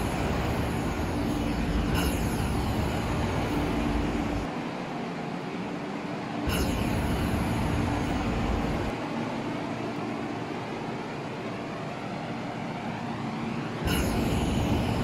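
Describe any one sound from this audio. A train rumbles slowly past a platform.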